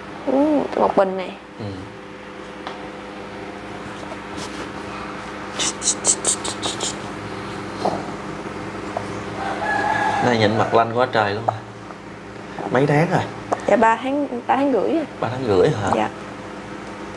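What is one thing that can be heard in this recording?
A young woman speaks softly and close by into a clip-on microphone.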